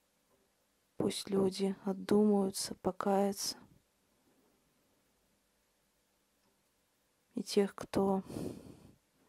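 A young woman speaks calmly and close up, in short phrases with pauses.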